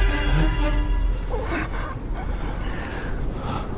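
A man grunts and gasps while struggling.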